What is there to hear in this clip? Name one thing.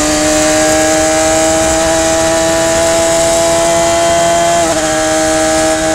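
A racing car engine roars loudly at high revs close by.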